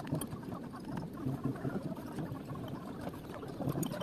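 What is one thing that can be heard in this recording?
A wrench ratchets as a bolt is turned.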